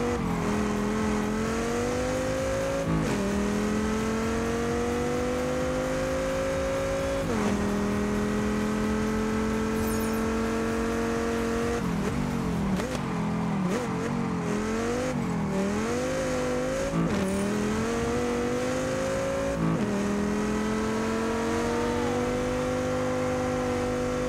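A car engine revs hard, climbing through the gears with sudden drops as it shifts.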